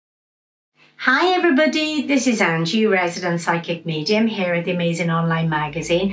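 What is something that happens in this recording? A middle-aged woman speaks calmly and clearly into a microphone, close by.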